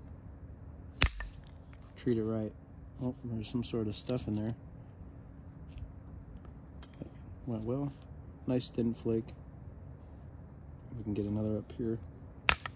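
A stone is struck with an antler hammer, giving sharp clicks.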